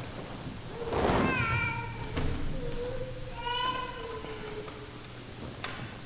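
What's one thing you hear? A man chants briefly in a large echoing hall.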